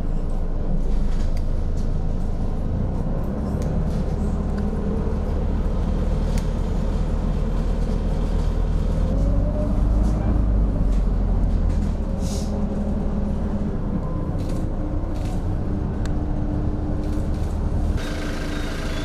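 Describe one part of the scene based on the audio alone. A bus engine rumbles steadily, heard from inside the moving bus.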